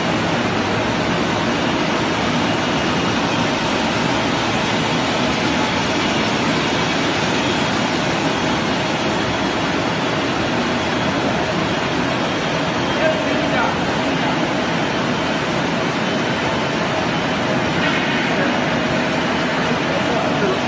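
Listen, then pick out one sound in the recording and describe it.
Machinery hums and rattles steadily.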